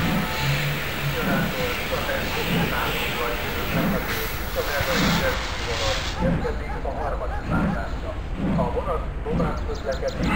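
A steam locomotive chuffs in an even rhythm as it moves along.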